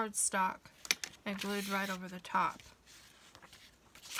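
Stiff paper rustles as it is handled.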